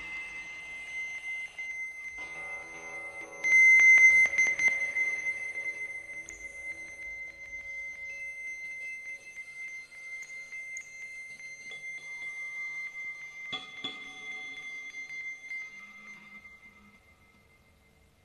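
Electronic tones and bleeps ring out from a synthesizer, sustained and shifting, then fade away.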